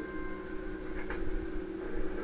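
A computer terminal gives a short electronic click as it switches off.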